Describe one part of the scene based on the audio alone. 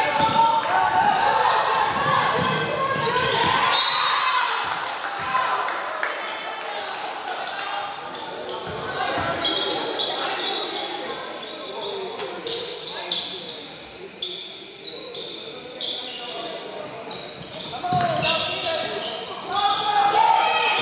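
Players and spectators shout and call out in a large echoing gym.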